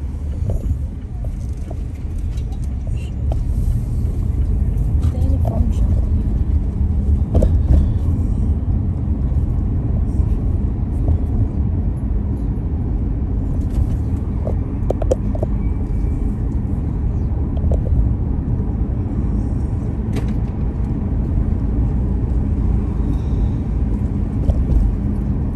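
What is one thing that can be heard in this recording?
A vehicle rolls steadily along a city street with a low rumbling hum.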